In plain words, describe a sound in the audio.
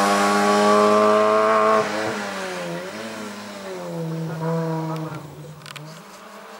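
A small car's engine revs hard, rising and falling as it races by and fades off.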